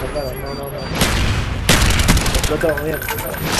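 Gunfire bursts out in quick, loud shots.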